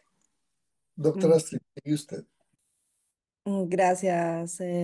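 A middle-aged woman speaks warmly and cheerfully over an online call.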